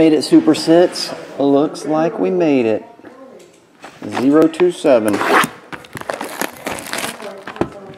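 Plastic wrap crinkles and tears as it is pulled off a box.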